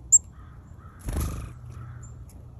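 A small bird's wings flutter as it flies off.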